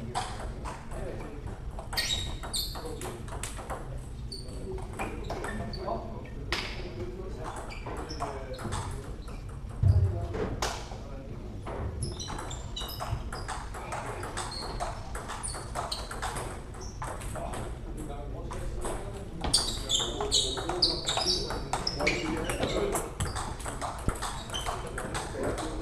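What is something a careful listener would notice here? A ping-pong ball clicks back and forth off paddles and a table in a rally.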